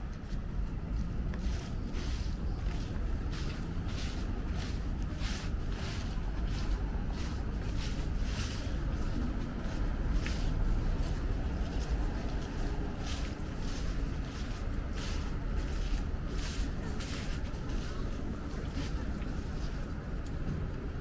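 Footsteps tap on paving at a steady pace.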